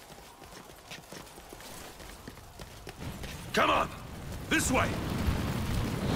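Swords clash in a battle.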